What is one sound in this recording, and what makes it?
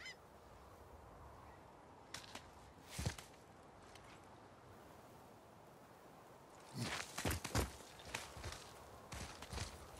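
Hands grab and scrape against rock while climbing.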